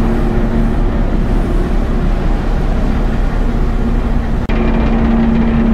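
Wind blows hard and rumbles outdoors.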